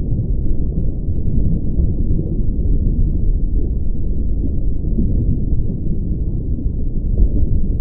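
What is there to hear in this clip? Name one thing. Bubbles rise and burble in water, heard as a low, steady rumble.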